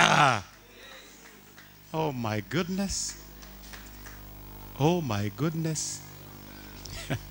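A man preaches with animation through a microphone and loudspeakers in a large echoing hall.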